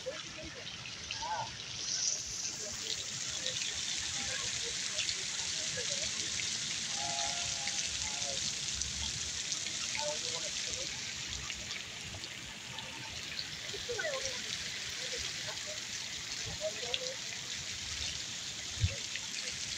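A woman sings into a microphone outdoors.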